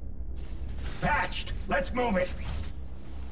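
A deep, electronically distorted male voice speaks a short line close up.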